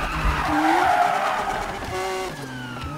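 Tyres screech on wet road while the car drifts.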